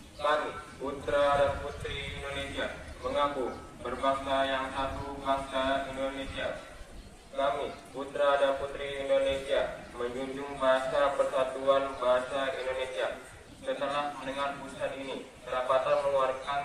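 A young man reads out loud and clearly through a microphone.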